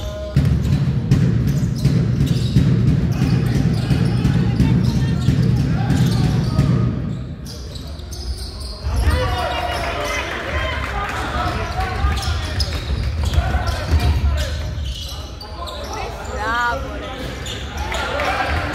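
A ball bounces on a wooden court.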